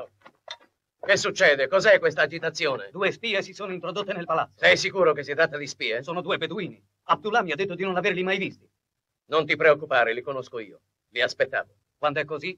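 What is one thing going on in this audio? A middle-aged man speaks firmly and with emphasis, close by.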